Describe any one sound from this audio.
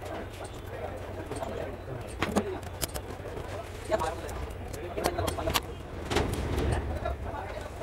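A metal tool taps and scrapes on small parts.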